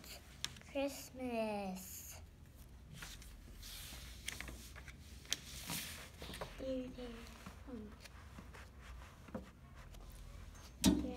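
Paper rustles as a young girl handles a book.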